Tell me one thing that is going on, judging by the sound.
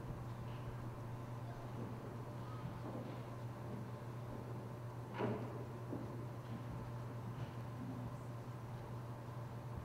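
Footsteps shuffle softly in a large echoing hall.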